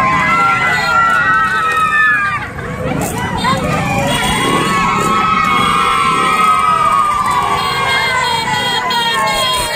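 A crowd of women and girls cheers and calls out nearby.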